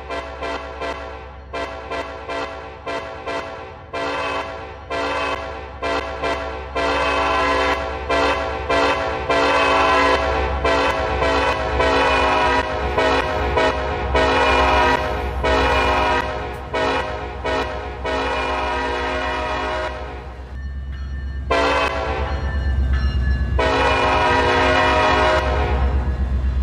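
A train horn blows in long and short blasts.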